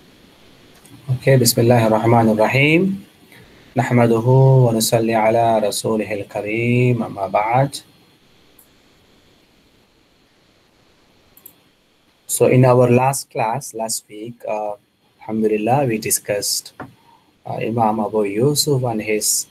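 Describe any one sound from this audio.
A man speaks calmly through an online call microphone, pausing between phrases.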